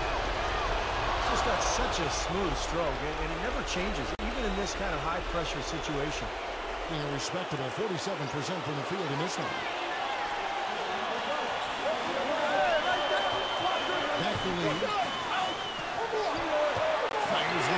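Basketball shoes squeak on a hardwood court.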